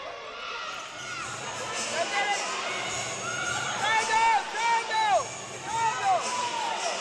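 Sneakers squeak sharply on a hardwood court.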